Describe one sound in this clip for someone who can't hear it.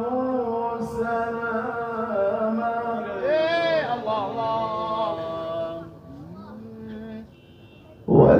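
A man sings a long, wavering melody into a microphone, heard through loudspeakers.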